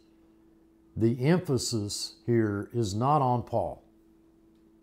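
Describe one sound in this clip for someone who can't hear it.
An elderly man speaks calmly and close up.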